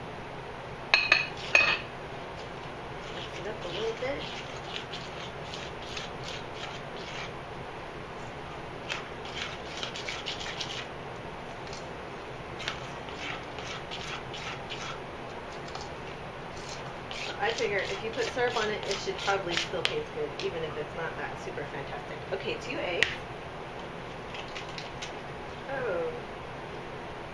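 A hand mixes flour in a metal bowl, scraping and rustling.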